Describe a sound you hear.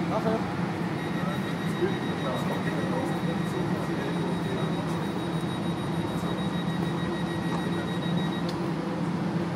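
A train's door warning beeps rapidly and steadily.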